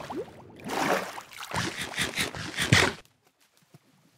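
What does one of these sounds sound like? Bubbles gurgle and burst underwater.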